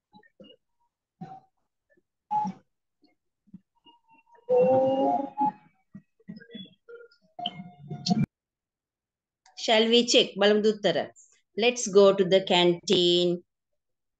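A woman speaks calmly and slowly over an online call.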